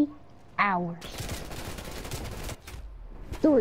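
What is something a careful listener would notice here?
Automatic gunfire rattles in a rapid burst.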